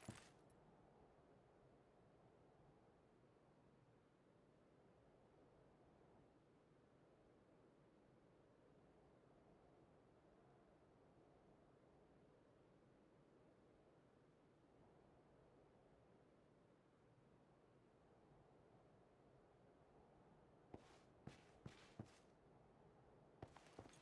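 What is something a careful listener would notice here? A soft wind blows steadily outdoors.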